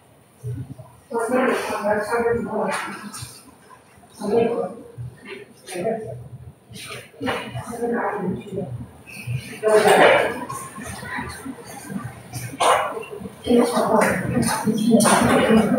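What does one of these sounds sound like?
A woman speaks calmly in an echoing room.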